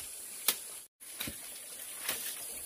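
A blade chops into bamboo.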